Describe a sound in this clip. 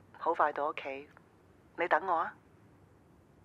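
A middle-aged man speaks calmly into a phone close by.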